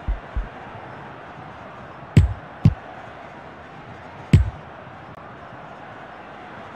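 A stadium crowd murmurs steadily.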